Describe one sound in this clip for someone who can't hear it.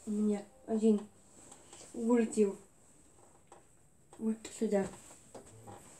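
A young girl speaks in short bursts close by.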